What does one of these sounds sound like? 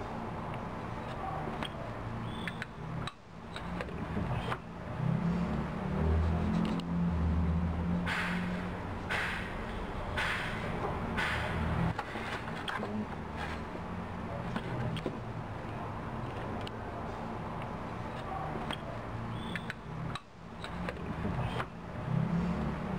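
Metal parts clink and click faintly.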